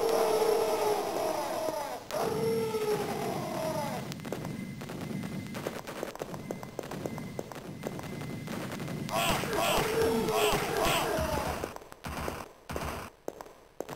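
A weapon fires rapid bursts of energy shots.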